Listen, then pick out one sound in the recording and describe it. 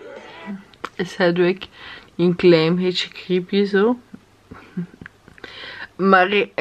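A young woman speaks softly and close up.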